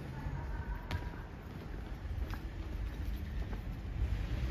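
Footsteps tap faintly on a paved street.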